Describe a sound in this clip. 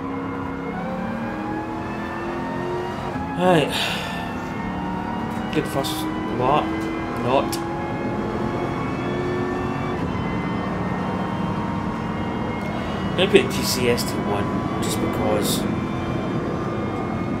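A racing car engine drones steadily and revs higher through the gears.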